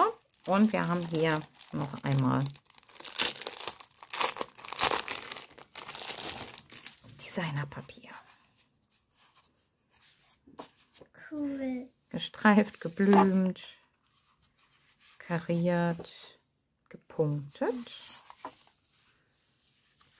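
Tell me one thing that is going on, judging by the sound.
Plastic wrapping and sheets of paper rustle and crinkle as they are handled.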